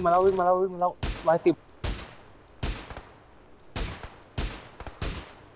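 A rifle fires repeated loud shots that echo outdoors.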